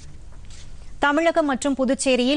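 A young woman reads out calmly and clearly into a microphone.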